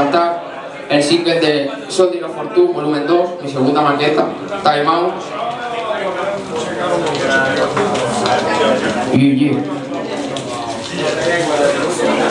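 A young man beatboxes loudly into a microphone through a loudspeaker.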